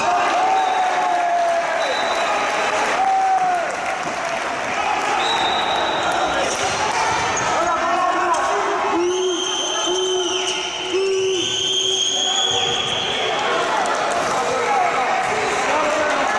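Sneakers squeak on a wooden court as players run.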